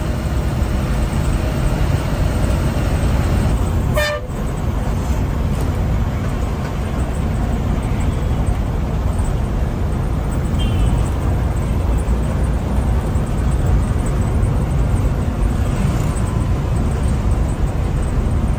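Wind and road noise rush past an open window.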